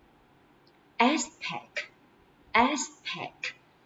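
A young woman speaks clearly through a microphone, reading out words slowly.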